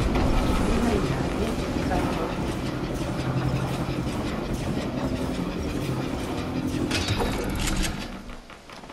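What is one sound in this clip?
A flying vehicle's engine hums steadily, then stops.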